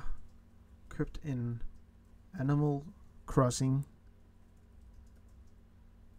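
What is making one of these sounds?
Plastic clicks and rattles as a console is handled.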